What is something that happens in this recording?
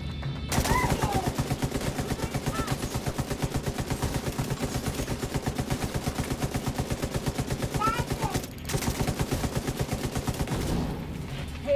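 Rapid automatic gunfire rattles in quick bursts.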